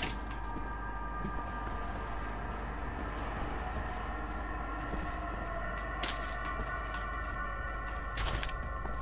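Footsteps tread along a hard stone floor.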